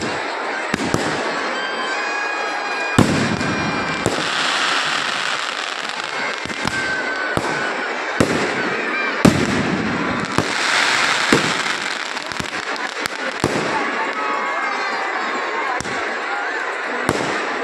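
Rockets whistle and hiss as they shoot up.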